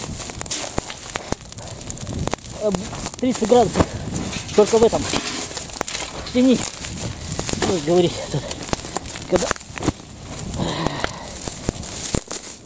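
A brush fire crackles and pops in dry leaves.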